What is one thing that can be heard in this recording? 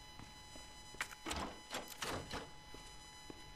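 A wooden door rattles and knocks.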